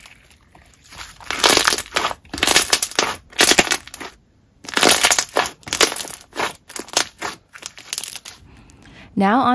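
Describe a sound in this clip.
Sticky slime squishes and crackles as hands squeeze and press it.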